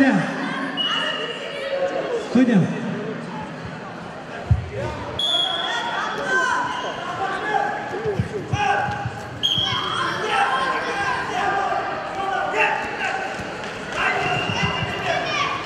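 Bare feet thump and scuff on a wrestling mat.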